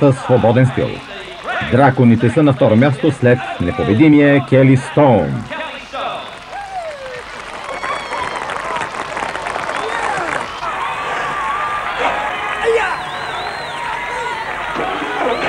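A crowd cheers and whoops loudly.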